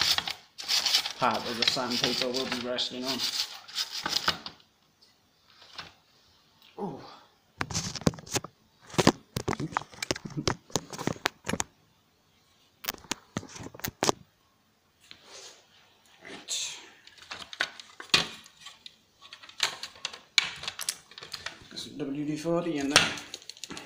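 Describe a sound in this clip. Plastic parts click, knock and rattle as a small machine is handled and taken apart.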